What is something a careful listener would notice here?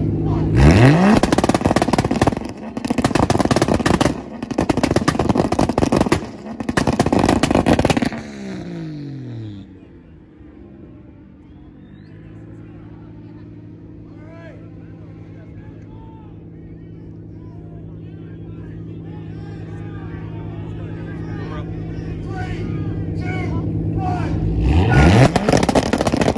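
A car engine revs loudly in sharp bursts.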